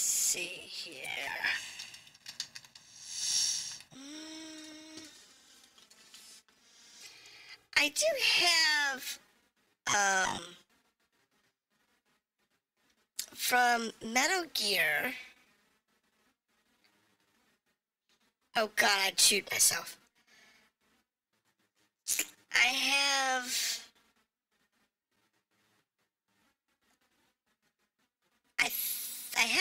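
A young woman talks animatedly into a close microphone, in short bursts.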